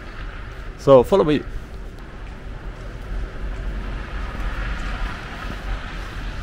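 Light wind blows outdoors.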